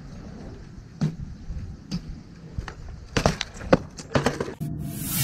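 A bicycle lands with a hard metal clatter.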